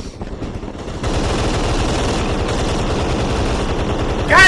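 Gunfire rattles rapidly and loudly.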